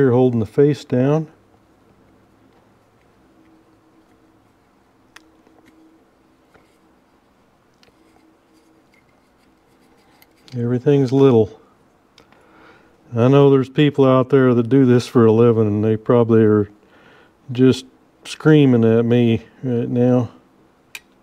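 A screwdriver turns a small screw.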